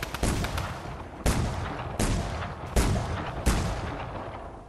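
Gunshots ring out in a quick burst, then fade away.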